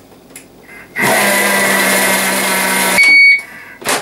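A kitchen mixer motor whirs loudly at high speed.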